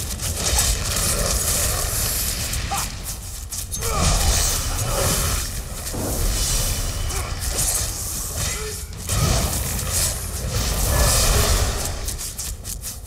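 Weapons clash and spells burst in a fast fight.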